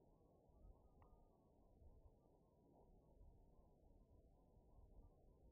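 A large seated crowd murmurs quietly.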